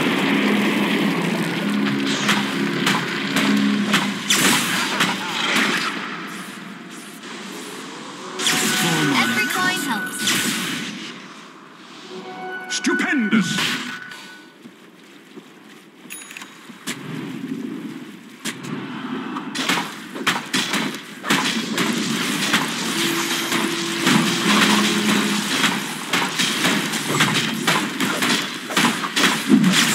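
Video game weapons clash and spells burst in a busy battle.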